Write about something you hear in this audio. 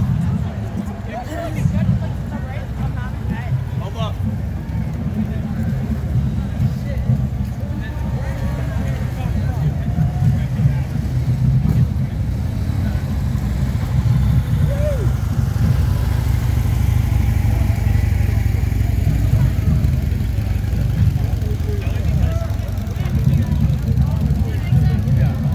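A crowd of people chatters and cheers outdoors along a street.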